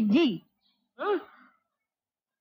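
A man gasps in surprise.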